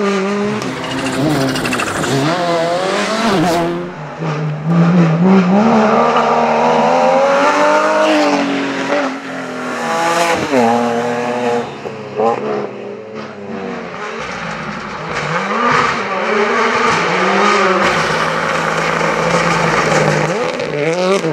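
Rally car engines roar loudly as they rush past, revving and shifting gears.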